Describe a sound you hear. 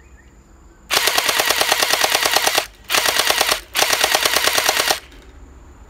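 A toy gun fires rapid bursts outdoors.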